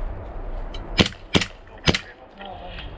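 An airsoft pistol fires several quick sharp shots.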